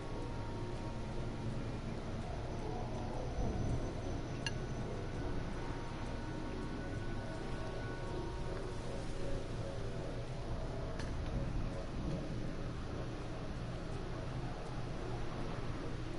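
A hover engine hums steadily.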